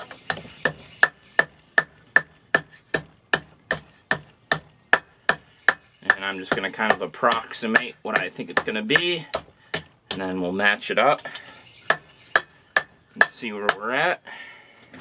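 A hammer strikes hot metal on an anvil in a quick, ringing rhythm.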